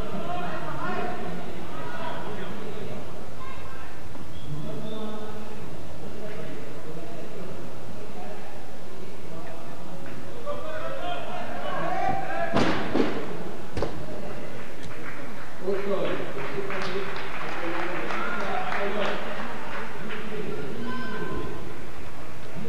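A crowd of people chatters in a large, echoing hall.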